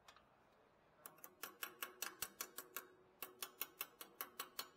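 A ratchet wrench clicks rapidly in quick bursts.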